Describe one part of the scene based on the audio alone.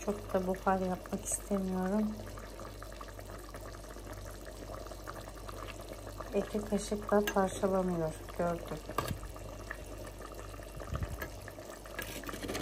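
A ladle stirs and scrapes against a clay pot.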